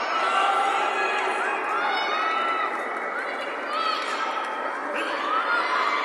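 A large crowd cheers steadily in an echoing hall.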